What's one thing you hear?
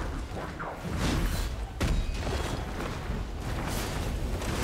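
A large creature smashes into the ground with loud crashes.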